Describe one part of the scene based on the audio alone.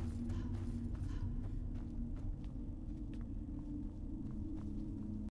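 Footsteps fall on stone.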